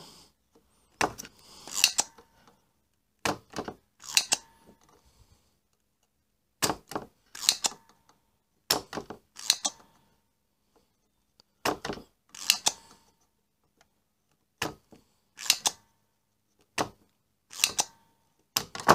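A hot air tool hisses in short, repeated bursts.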